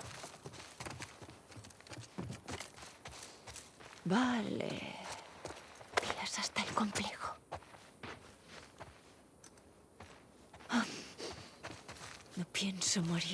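Footsteps walk across a wooden floor.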